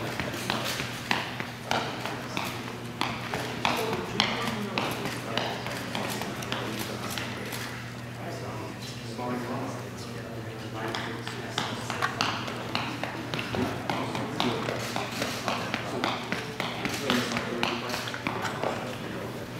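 Sneakers tap quickly and lightly on a rubber floor.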